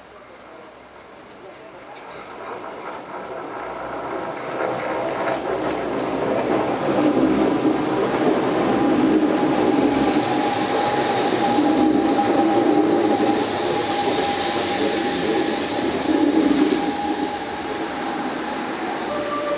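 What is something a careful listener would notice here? An electric train approaches and rolls past close by, growing louder.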